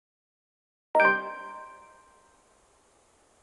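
A bright chime rings once and fades quickly.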